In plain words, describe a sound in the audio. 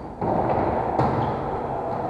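A volleyball is struck with a sharp thud in a large echoing hall.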